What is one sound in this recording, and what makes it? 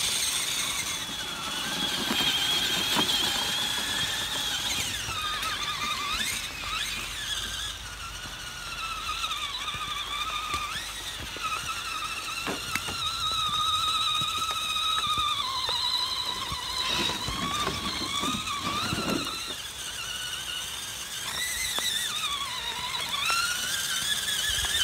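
Tyres squelch through wet mud.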